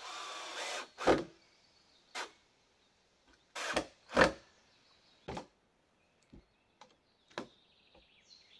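Wooden planks knock against each other.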